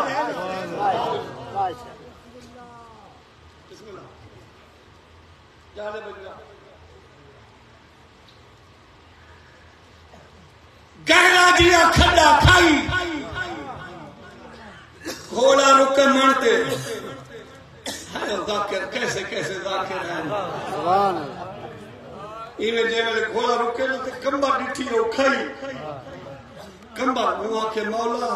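A man recites loudly and with feeling through a microphone.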